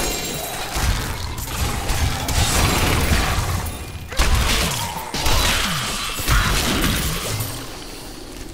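Fiery magic blasts crackle and boom in rapid bursts.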